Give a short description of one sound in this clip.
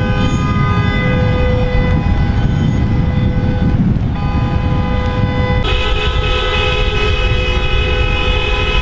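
Wind rushes and buffets loudly past a moving car.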